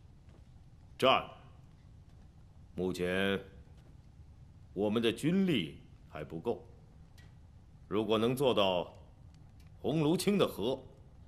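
A middle-aged man speaks firmly in measured phrases, close by.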